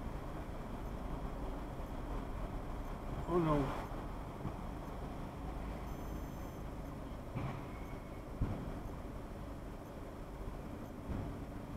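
A car engine idles with a low rumble, heard from inside the car.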